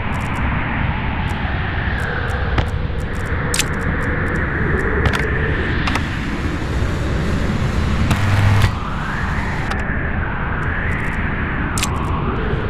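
Short clicks sound as building parts snap into place.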